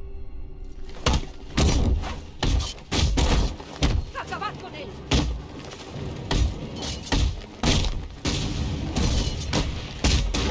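Punches and kicks thud in a fast brawl.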